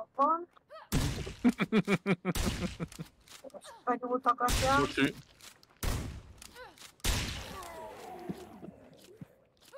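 Gunshots bang in quick bursts.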